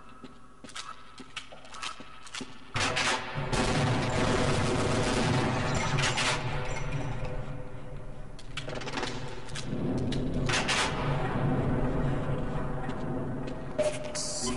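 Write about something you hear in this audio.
Footsteps clank on metal floors and stairs.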